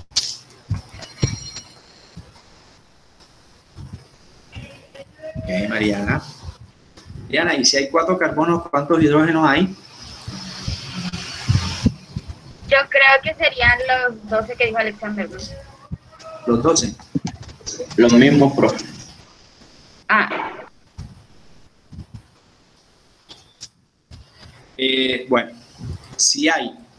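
A man speaks through an online call, in short bursts with pauses.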